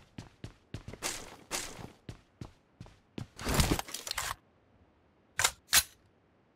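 Rifle shots crack in short, sharp bursts.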